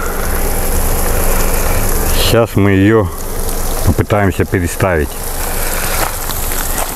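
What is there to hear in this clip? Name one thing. A water sprinkler hisses steadily, spraying water.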